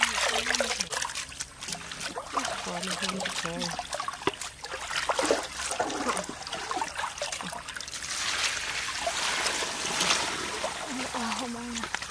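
Snail shells clatter and rattle as hands stir them in a basket.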